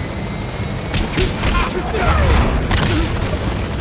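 Heavy punches land with dull thuds.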